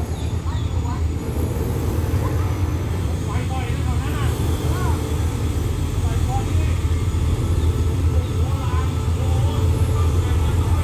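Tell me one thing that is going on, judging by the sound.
A diesel train engine rumbles low and steady as it slowly draws closer.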